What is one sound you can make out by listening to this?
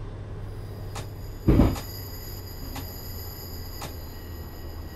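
Train wheels clack over rail joints a few times.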